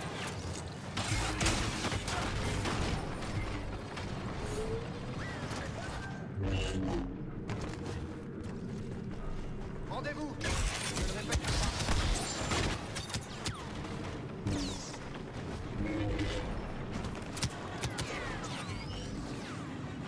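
A lightsaber swings with sharp whooshes and clashes.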